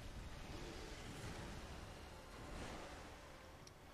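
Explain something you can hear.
Water splashes heavily as a large beast lands.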